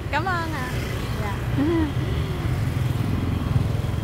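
A motor scooter passes close by.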